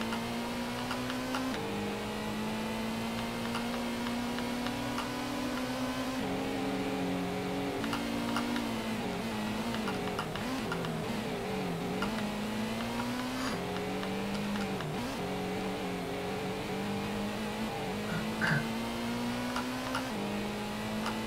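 A racing car engine roars steadily, shifting gears and changing pitch as it speeds up and slows down.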